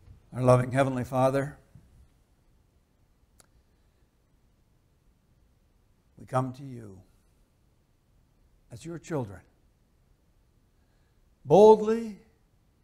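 An elderly man speaks calmly into a microphone, with long pauses between phrases.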